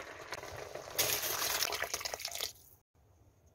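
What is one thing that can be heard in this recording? Water pours and splashes into a pot.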